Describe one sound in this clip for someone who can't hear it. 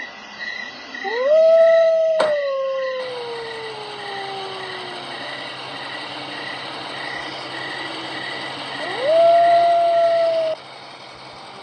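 A car engine in a game revs up and then winds down.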